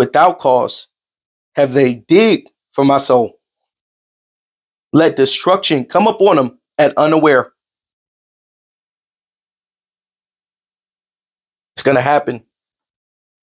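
A man speaks with animation into a close microphone, in short bursts with pauses.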